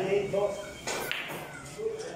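A cue stick strikes a ball with a sharp click.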